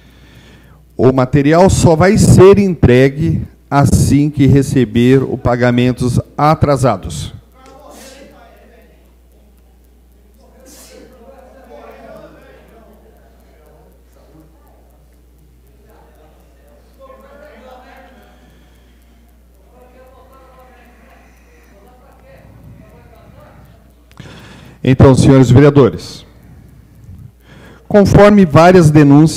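A middle-aged man reads aloud through a microphone.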